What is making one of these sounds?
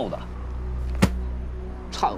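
A book thumps down onto a table.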